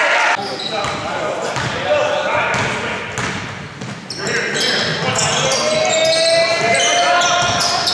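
A basketball bounces repeatedly on a wooden floor.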